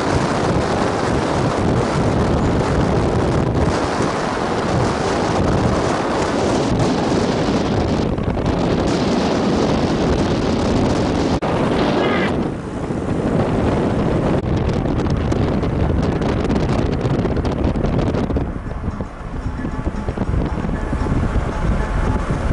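Wind roars and buffets loudly past a moving vehicle.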